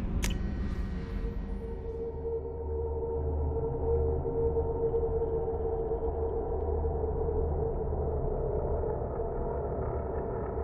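A low, steady mechanical hum of an elevator drones.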